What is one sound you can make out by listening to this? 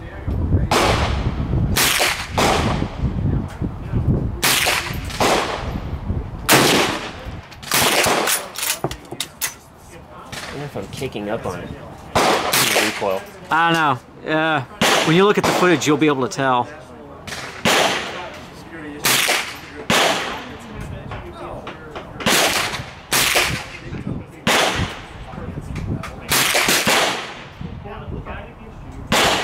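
Rifle shots crack loudly and echo outdoors.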